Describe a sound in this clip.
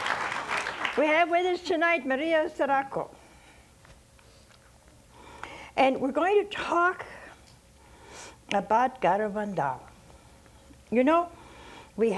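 An elderly woman speaks calmly and slowly, close by, with pauses.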